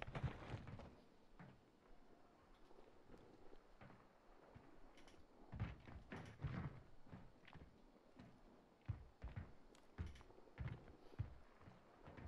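Footsteps thud on a metal roof.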